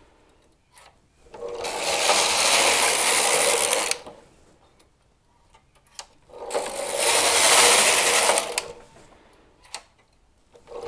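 Clicks come from the machine as the carriage is set.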